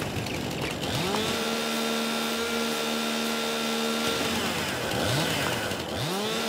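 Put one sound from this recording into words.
A chainsaw revs up and buzzes steadily, then revs again.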